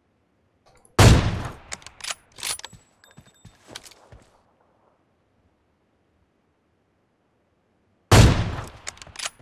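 A sniper rifle fires a loud, booming shot.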